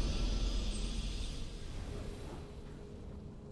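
A bright victory fanfare rings out and quickly fades.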